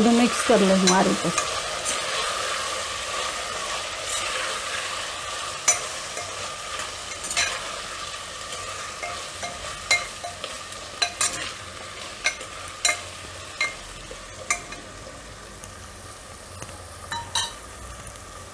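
A metal spoon scrapes and clinks against a pot while stirring vegetables.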